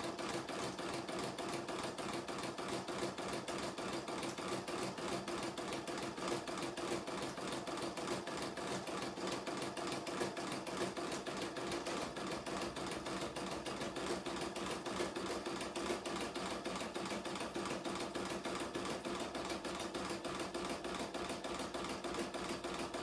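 An embroidery machine stitches with a rapid, steady mechanical whirring and tapping.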